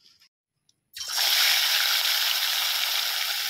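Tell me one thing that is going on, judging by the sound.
Fish sizzles loudly in hot oil.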